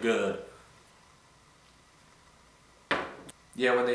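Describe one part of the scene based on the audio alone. A glass is set down on a table with a knock.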